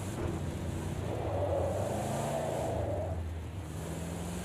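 Tyres screech as a car slides through corners.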